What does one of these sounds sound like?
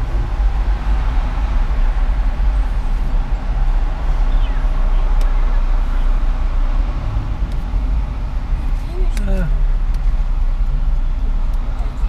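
A car's engine hums steadily with road noise from inside the car.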